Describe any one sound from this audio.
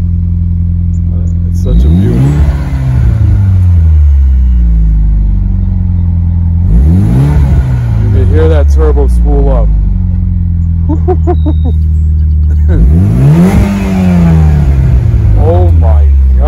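A car engine idles with a deep, loud exhaust rumble.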